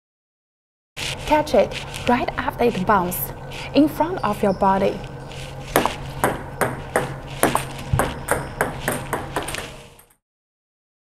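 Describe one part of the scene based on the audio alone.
A ping-pong ball bounces and clicks against a paddle and table in a quick, even rhythm.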